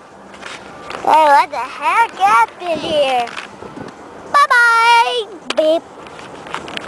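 A young child talks and squeals close to the microphone.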